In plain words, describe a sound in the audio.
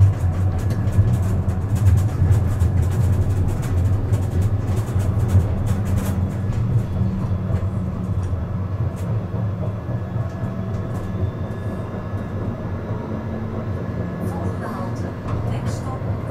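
Tram wheels click and rattle on the track.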